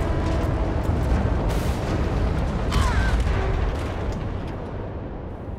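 Sharp crackles and bangs of debris burst through the rumble.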